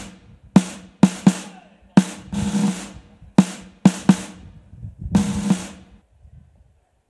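Drums beat sharply in a crisp military rhythm.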